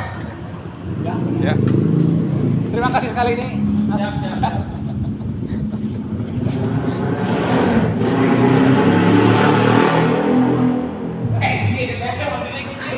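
Young men talk and chat nearby.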